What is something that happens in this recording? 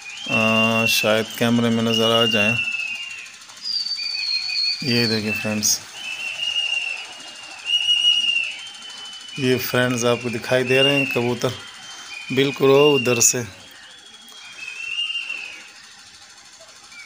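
Birds chirp overhead.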